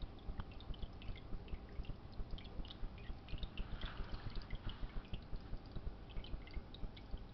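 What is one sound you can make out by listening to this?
Small air bubbles pop and fizz at the water's surface.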